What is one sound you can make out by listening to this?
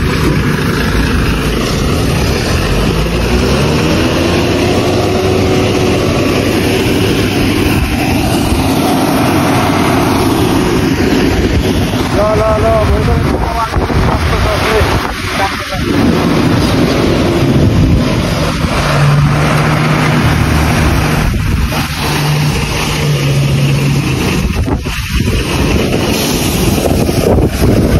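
A truck engine idles and rumbles loudly nearby.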